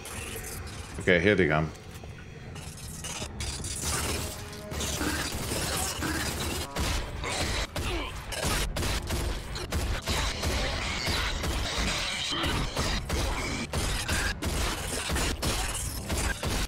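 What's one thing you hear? A man talks into a microphone with animation.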